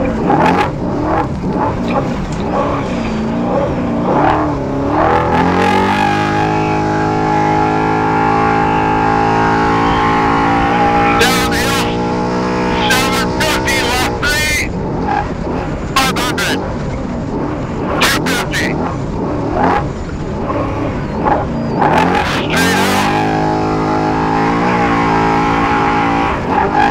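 An off-road engine roars steadily, rising and falling in pitch as it revs.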